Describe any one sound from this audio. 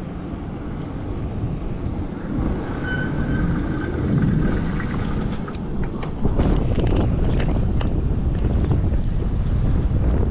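Wind buffets loudly against the rider outdoors.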